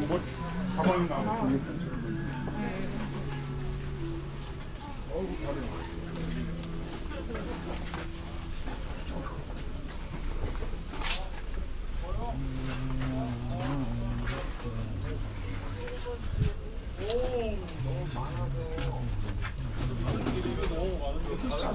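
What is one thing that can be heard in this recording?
A crowd of men and women chatter nearby in a busy outdoor passage.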